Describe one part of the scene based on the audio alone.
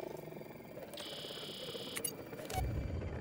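A handheld electronic device hisses with static.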